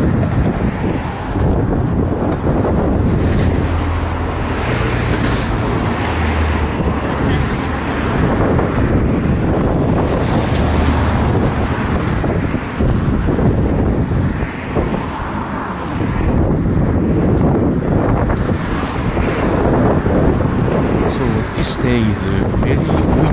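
Road traffic rushes past steadily nearby.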